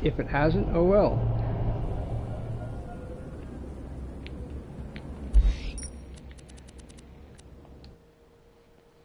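A deep whooshing rumble swells and slowly fades away.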